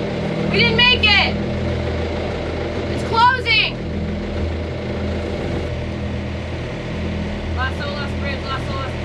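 A young woman speaks briefly nearby.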